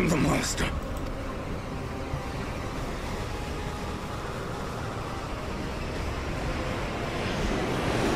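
Airship engines hum low and steady.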